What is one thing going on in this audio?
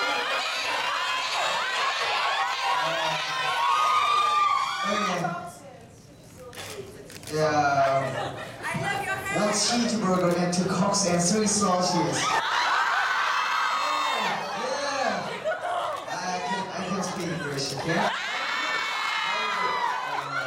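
A young man speaks into a microphone over loudspeakers in a large echoing room.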